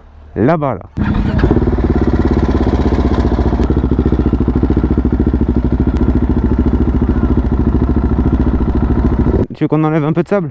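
A motorcycle engine hums steadily at low speed.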